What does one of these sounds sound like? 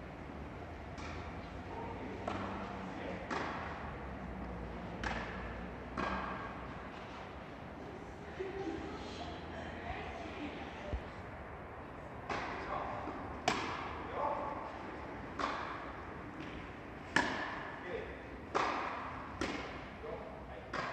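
Tennis rackets strike a ball back and forth, echoing in a large hall.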